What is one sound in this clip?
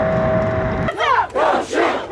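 A young woman shouts through a megaphone outdoors.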